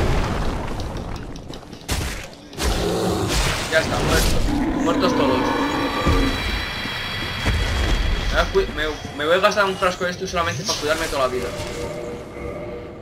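A huge beast roars loudly.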